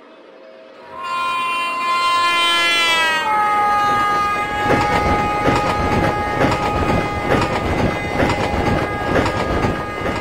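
A train horn blares and drops in pitch as the train passes close by.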